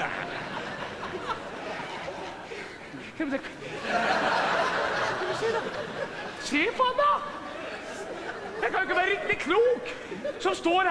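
A man declaims loudly and theatrically.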